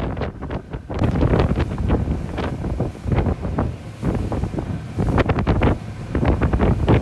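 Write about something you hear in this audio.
Water churns and splashes loudly in a boat's wake.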